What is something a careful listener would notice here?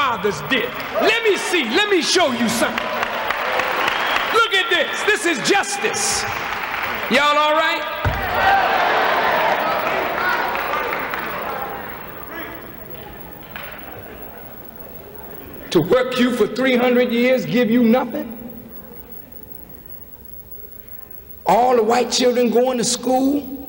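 A man speaks forcefully through a microphone in a large echoing hall.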